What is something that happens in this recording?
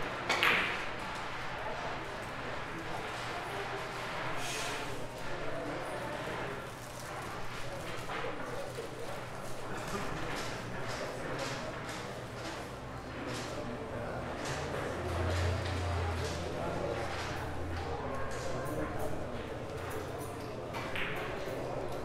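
Billiard balls click against each other on a table.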